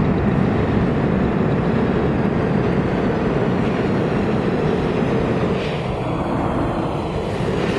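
A subway train rumbles and rattles into an underground station, echoing loudly.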